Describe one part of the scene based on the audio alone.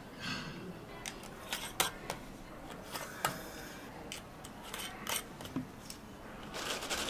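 Metal lids clink onto glass jars.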